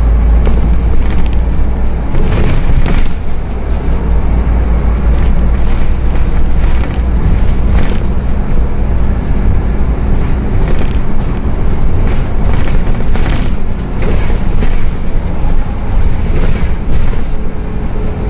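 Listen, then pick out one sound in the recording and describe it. The bus body rattles and clicks over bumps in the road.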